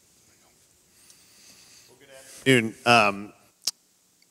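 A younger man speaks through a microphone.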